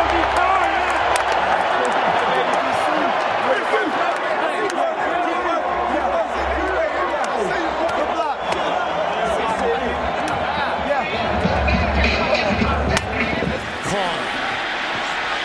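A large stadium crowd roars and cheers throughout.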